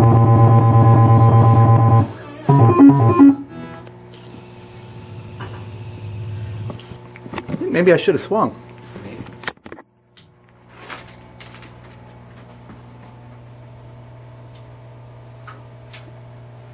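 A pinball machine plays electronic beeps and tones.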